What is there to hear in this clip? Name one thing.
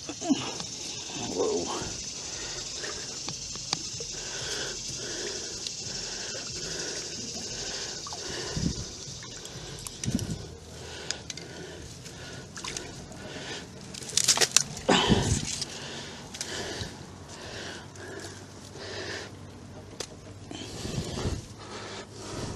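Leaves rustle and brush as hands move through plants close by.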